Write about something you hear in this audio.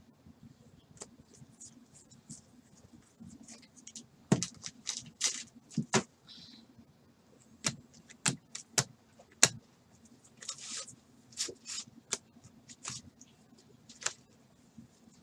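Trading cards flick and rustle as they are sorted by hand.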